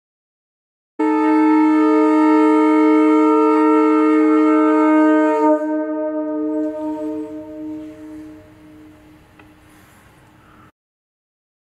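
A man blows a conch shell in a long, steady, loud blast that slowly fades.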